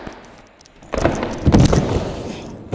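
A body thuds onto a wooden ramp.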